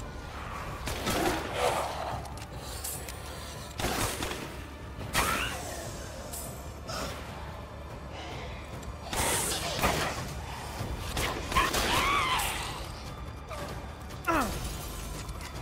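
Creatures screech and shriek as they are hit.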